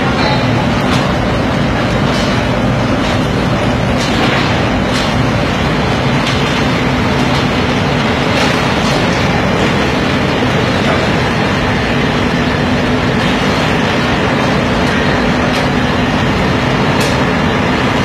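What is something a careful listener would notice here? Metal clanks and bangs now and then.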